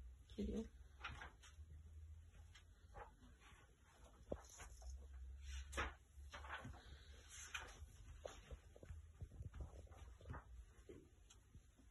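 Paper pages rustle and turn.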